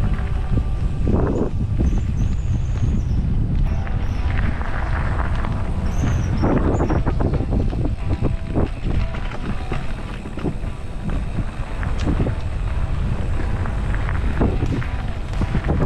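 Bicycle tyres roll and crunch over a dirt and gravel trail.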